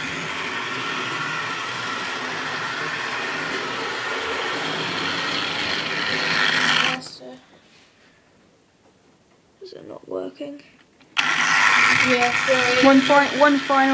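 A model train whirs and rattles along the track close by.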